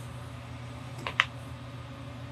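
Paper rustles briefly under a hand.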